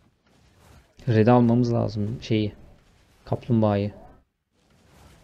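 A young man speaks loudly and with animation, close to a microphone.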